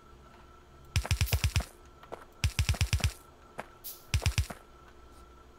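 Objects snap into place with rapid bursts of sharp clicks and thuds.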